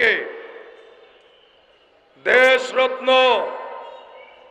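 A young man preaches loudly and with fervour into a microphone, echoing through loudspeakers outdoors.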